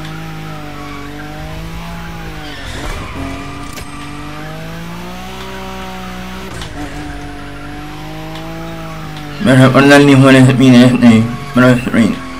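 A car engine drones and revs up and down.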